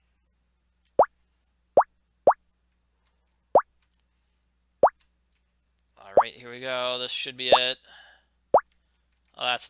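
A ball in a video game bounces off a paddle with short, rising blips.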